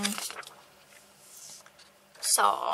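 A sheet of paper slides across a table.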